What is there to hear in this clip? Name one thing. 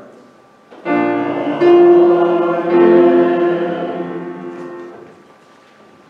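A man sings a slow chant, ringing in a large echoing room.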